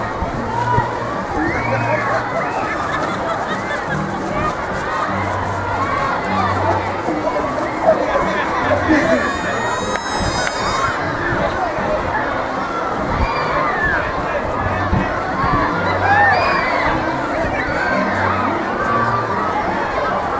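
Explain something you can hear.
A crowd of men and women chatters and cheers outdoors.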